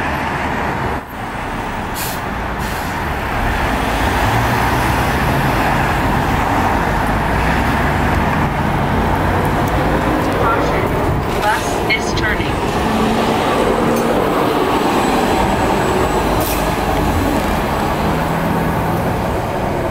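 City traffic rumbles steadily outdoors at night.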